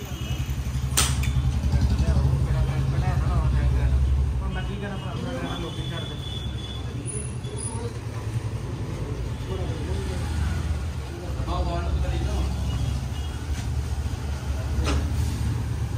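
A metal tool clanks against metal.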